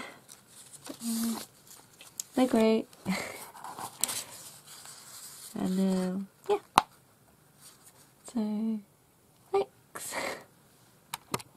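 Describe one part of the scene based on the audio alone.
Paper tickets rustle and crinkle as hands shuffle them.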